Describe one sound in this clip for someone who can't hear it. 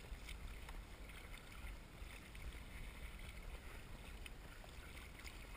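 Choppy water laps against a kayak's hull.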